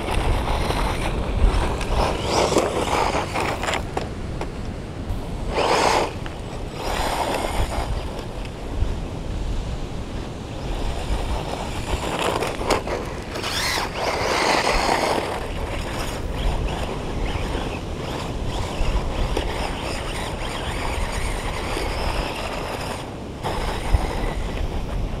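A small electric motor whines as a toy car races over dirt.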